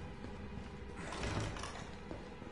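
Swinging doors bang open.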